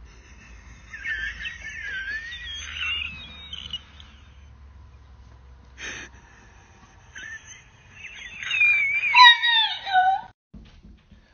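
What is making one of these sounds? A young woman shouts and squeals excitedly nearby.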